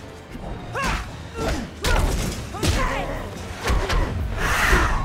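Fighters land heavy punches and kicks with sharp thuds.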